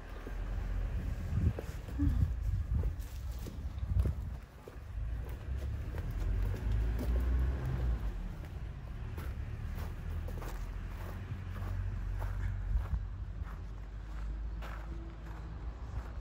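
Footsteps crunch and scuff on gravel and concrete outdoors.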